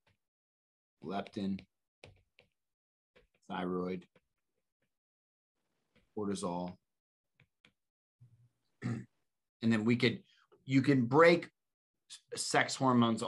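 A man speaks calmly in short phrases over an online call, pausing often.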